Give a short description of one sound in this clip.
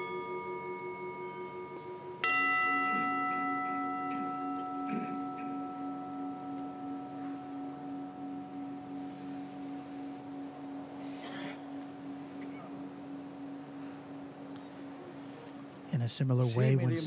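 A set of bells is struck, ringing out clearly and slowly fading.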